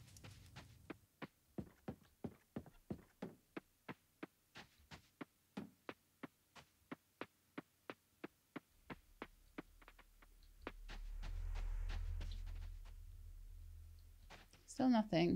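Footsteps patter quickly and evenly over the ground.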